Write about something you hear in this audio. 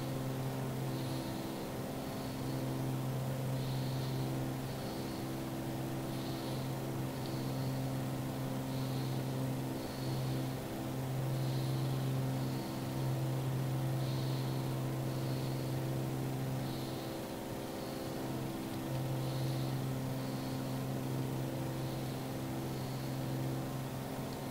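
A small propeller plane's engine drones steadily from inside the cockpit.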